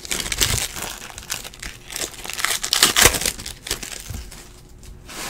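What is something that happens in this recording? A foil card wrapper crinkles and rustles as it is torn open.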